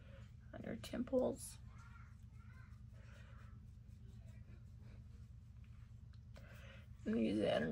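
A makeup brush brushes softly across skin.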